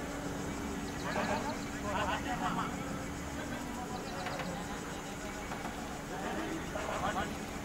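Men call out faintly across an open field, far off.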